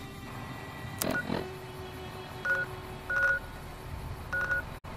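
Short electronic beeps and clicks sound from a handheld device's menu.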